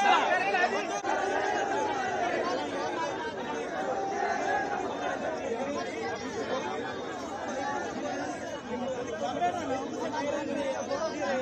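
A crowd murmurs and talks in the background.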